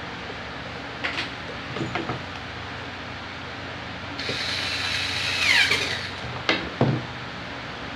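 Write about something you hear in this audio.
Metal parts click and clatter as they are handled.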